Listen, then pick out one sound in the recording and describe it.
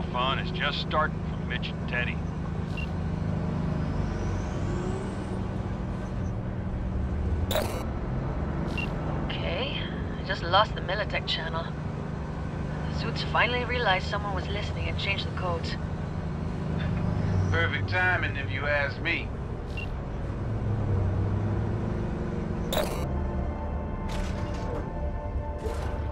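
A heavy vehicle's engine rumbles steadily while driving.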